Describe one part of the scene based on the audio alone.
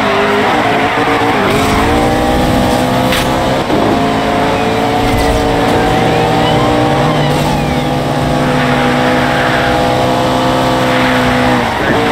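A sports car engine roars at high speed, shifting gears.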